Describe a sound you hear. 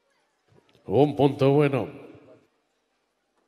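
A man shouts out loudly.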